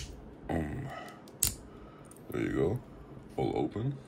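A plastic cap snaps off a small vial with a click.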